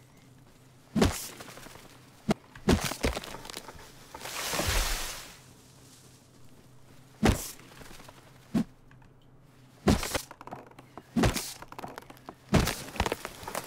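A rock strikes a tree trunk with sharp wooden thuds.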